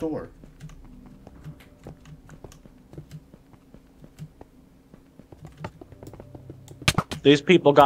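Footsteps thud softly on hard blocks at a steady walking pace.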